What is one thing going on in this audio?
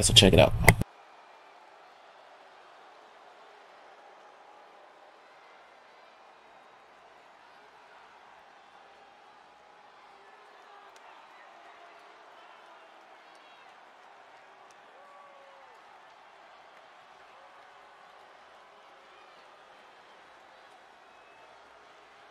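A large crowd murmurs and cheers in a big echoing arena.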